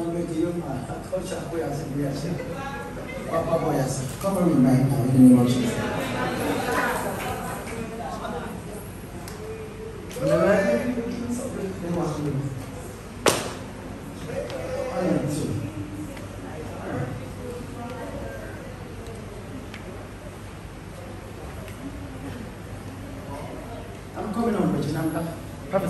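A woman sings with passion through a microphone and loudspeakers.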